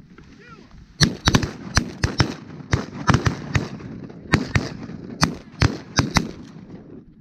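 Shotguns fire a rapid series of loud blasts close by.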